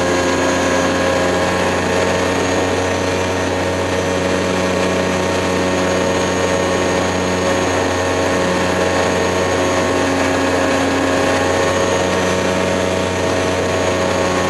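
Wind rushes loudly past the cockpit.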